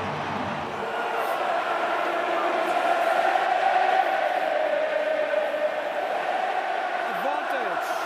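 A large crowd sings together in an echoing stadium.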